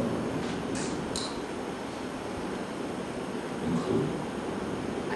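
A young man speaks calmly into a microphone, heard through a loudspeaker.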